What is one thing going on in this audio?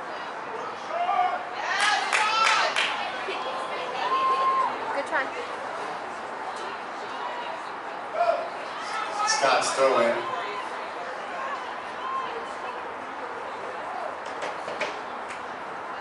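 Young women shout and call out across an open field outdoors.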